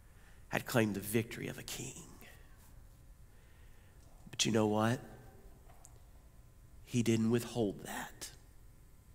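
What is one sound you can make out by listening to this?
A middle-aged man speaks with animation through a microphone in a large echoing hall.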